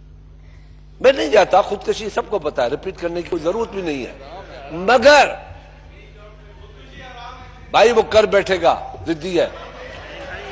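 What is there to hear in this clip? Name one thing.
An elderly man speaks forcefully into a microphone in a large hall.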